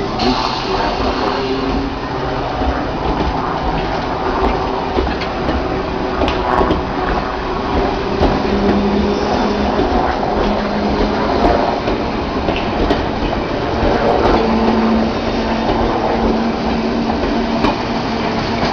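A train rumbles and rattles past at close range.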